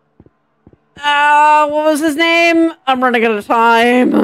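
A young woman speaks animatedly and loudly into a microphone, close by.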